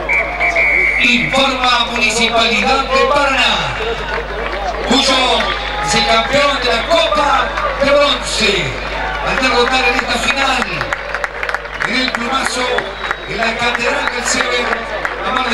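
Young men on the field shout and call out to each other.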